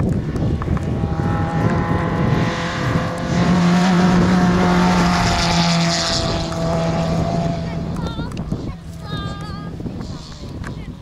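A rally hatchback engine roars past at full throttle.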